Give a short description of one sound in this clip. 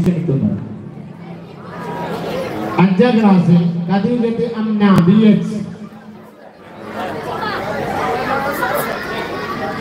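A man sings a melodic chant into a microphone through loudspeakers, echoing in a large open space.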